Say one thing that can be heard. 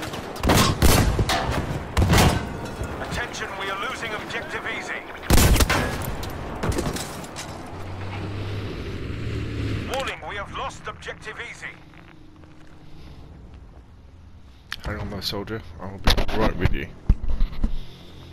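Gunshots crack loudly in bursts.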